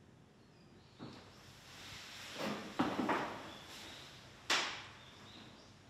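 A chair scrapes on the floor.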